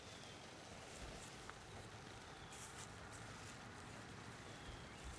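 Loose soil crumbles and rustles in a hand.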